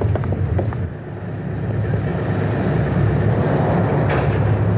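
Boats churn through choppy water.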